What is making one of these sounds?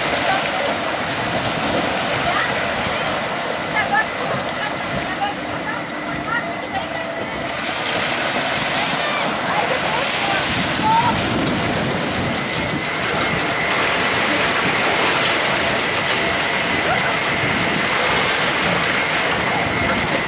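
Water splashes and churns as ride boats swing through a pool.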